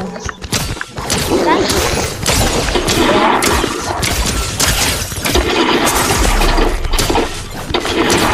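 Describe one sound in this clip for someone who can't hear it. A pickaxe strikes a fighter again and again with sharp thuds.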